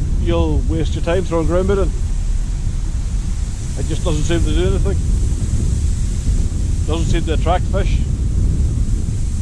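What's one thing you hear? Wind blows steadily across an open microphone outdoors.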